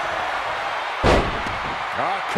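A body slams hard onto the ring mat with a heavy thud.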